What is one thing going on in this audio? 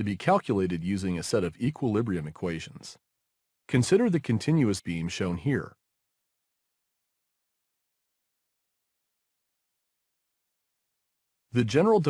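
A man narrates calmly into a microphone, close by.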